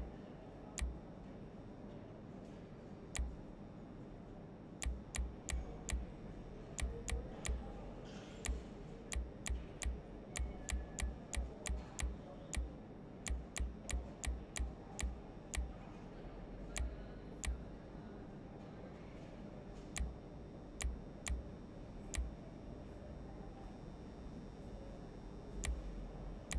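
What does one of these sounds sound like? Short, sharp menu clicks tick at an uneven pace.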